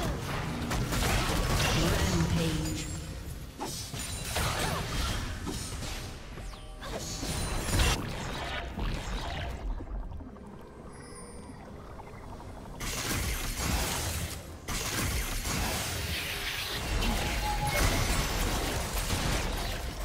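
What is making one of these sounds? Video game spell effects whoosh, crackle and burst during a fight.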